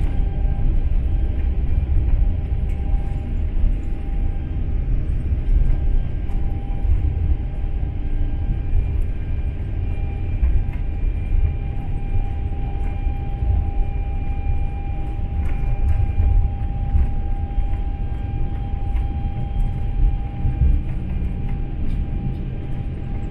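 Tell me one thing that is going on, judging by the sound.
A jet airliner's engines roar steadily inside the cabin as it rolls along the runway.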